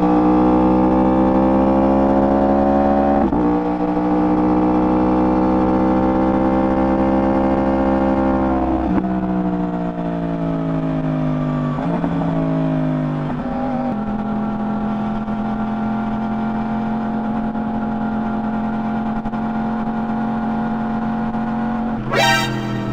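A motorcycle engine hums loudly at speed, its pitch dropping with each gear change.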